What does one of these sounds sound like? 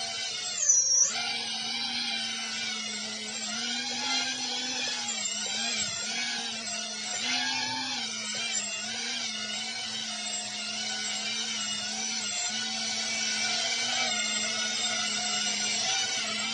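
A small drone's propellers whine in a high, steady buzz that wavers in pitch as it hovers.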